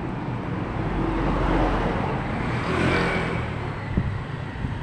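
A motorcycle engine passes close by.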